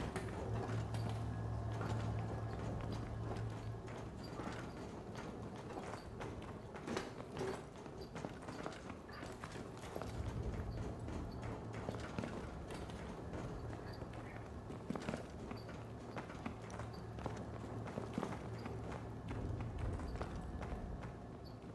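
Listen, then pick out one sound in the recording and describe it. Boots step on metal grating and hard floors.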